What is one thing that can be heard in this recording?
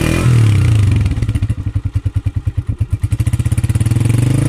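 A motorcycle engine idles with a rapid, steady putter.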